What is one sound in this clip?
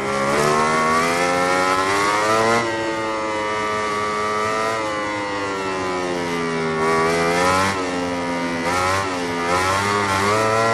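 A motorcycle engine whines loudly, rising and falling in pitch as it speeds up and slows through bends.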